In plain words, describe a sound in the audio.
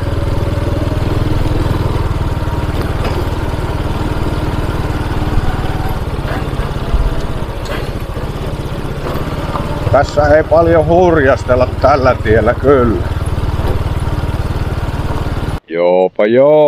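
A motorbike engine rumbles steadily as the bike rides along a bumpy dirt track.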